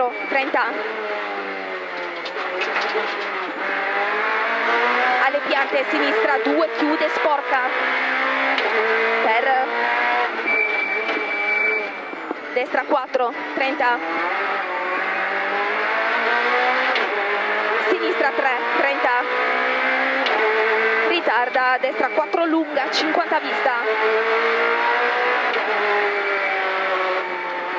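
A rally car engine roars loudly, revving up and down with the gear changes.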